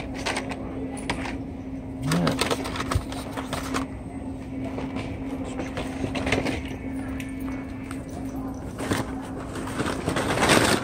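Cardboard toy packages rustle and clatter as a hand rummages through them.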